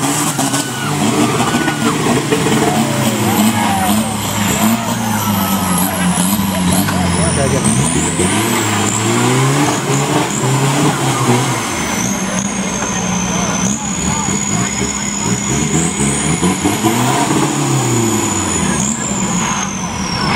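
An off-road vehicle's engine revs hard and roars as it churns through mud.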